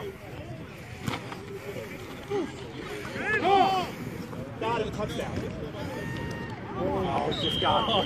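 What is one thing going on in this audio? Men and women shout and cheer from the sidelines of an open field outdoors.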